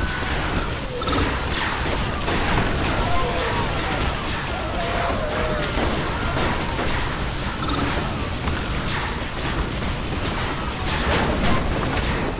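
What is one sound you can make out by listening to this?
Weapons clash and hit in a dense, continuous game battle.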